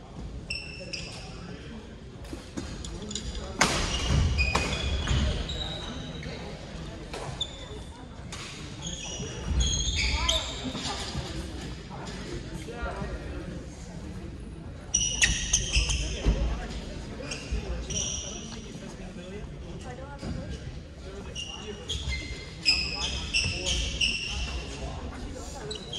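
Shuttlecocks are struck with rackets with light pops.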